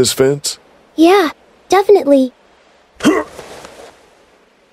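A young girl speaks softly up close.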